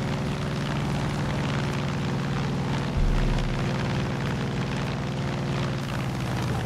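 A small propeller plane's engine drones steadily up close.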